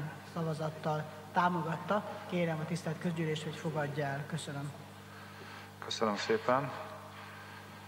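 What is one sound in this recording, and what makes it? An elderly woman speaks calmly into a microphone.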